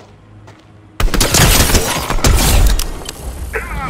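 Loud rifle shots ring out and echo.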